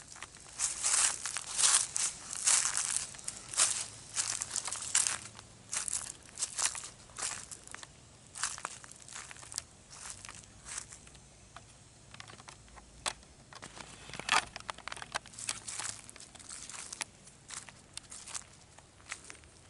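Footsteps crunch on a gravel path.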